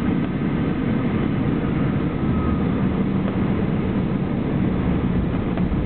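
Wheels touch down and rumble along the runway.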